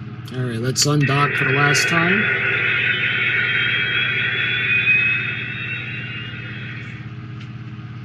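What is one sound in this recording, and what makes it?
A toy launch pad plays a loud electronic rocket roar that slowly fades out.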